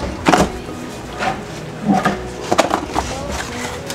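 A cardboard box rattles as it is handled.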